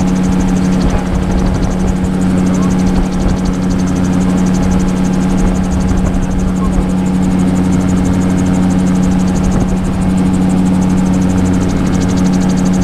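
Rotor blades whir overhead in a fast, even beat.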